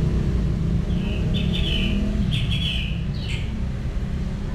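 A cat meows close by, several times in quick succession.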